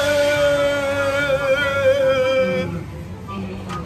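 A man lets out a long, drawn-out groan up close.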